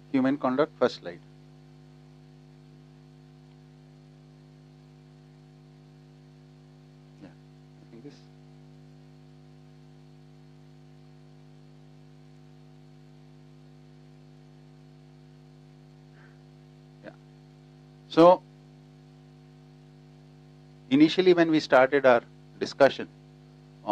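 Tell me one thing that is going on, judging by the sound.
A man speaks calmly in short bursts, with long pauses.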